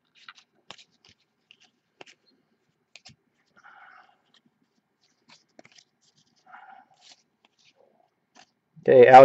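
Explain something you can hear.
Trading cards flick and rustle softly as they are shuffled by hand.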